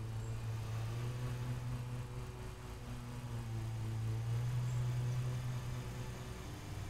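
A lawn mower engine hums steadily at low pitch.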